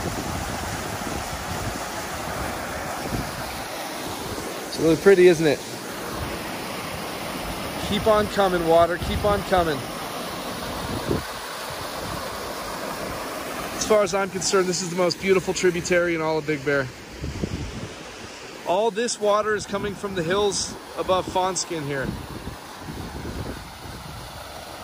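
Water rushes and splashes steadily over a small weir outdoors.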